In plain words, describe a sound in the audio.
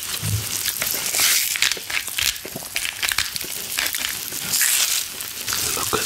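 A pepper grinder crunches and grinds.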